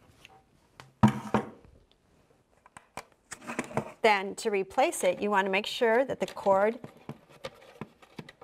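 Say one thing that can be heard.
A plastic device clicks and knocks as it is handled on a table.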